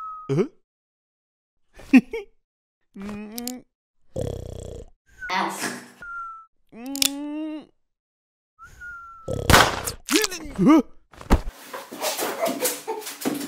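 A man speaks in an exaggerated cartoon voice, close by.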